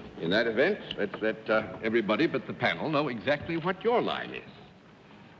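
A man speaks lively into a microphone.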